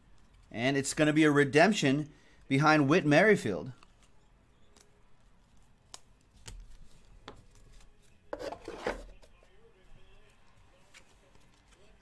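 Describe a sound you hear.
Trading cards shuffle and flick in hands.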